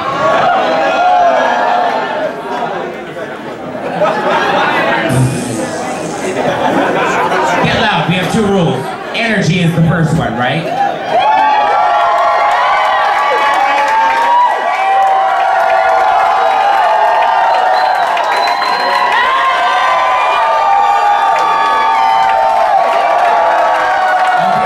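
A woman sings loudly through a microphone.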